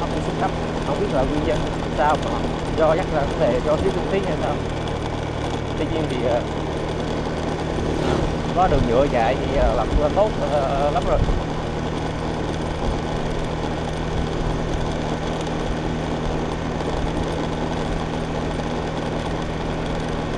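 Tyres roll over a rough paved road.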